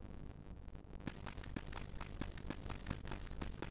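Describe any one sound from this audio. Quick footsteps tap on a hard floor.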